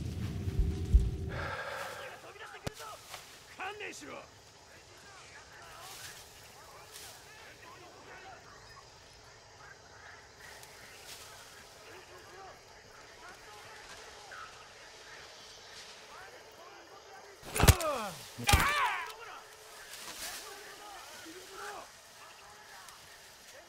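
Footsteps rustle through dense undergrowth.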